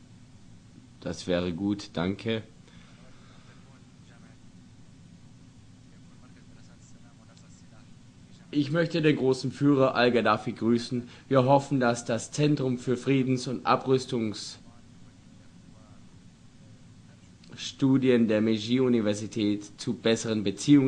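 A man speaks calmly over loudspeakers in a large echoing hall.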